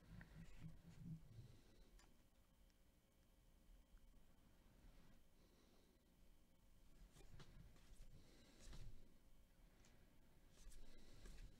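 Glossy cards slide and flick against each other as hands shuffle them.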